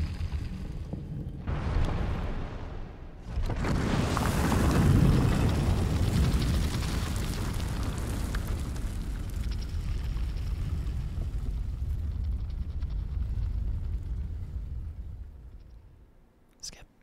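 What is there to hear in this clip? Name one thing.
A deep rumbling roar swells and slowly fades.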